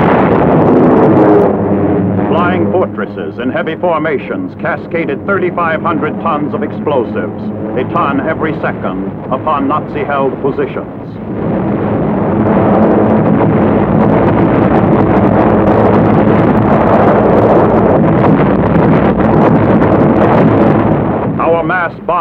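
Aircraft engines drone steadily.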